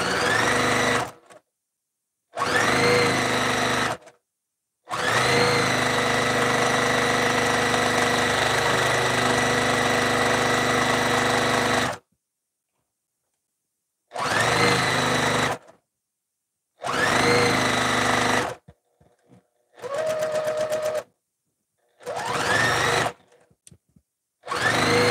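A high-speed straight-stitch sewing machine runs in short bursts, stitching fabric.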